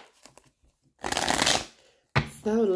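Cards rustle and slide under a hand.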